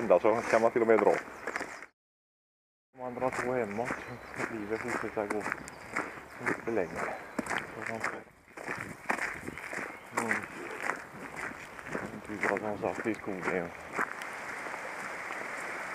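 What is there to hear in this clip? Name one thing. Dogs' paws patter on a gravel path.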